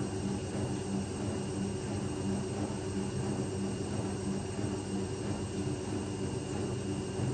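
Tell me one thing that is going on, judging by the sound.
Wet laundry sloshes and tumbles inside a washing machine drum.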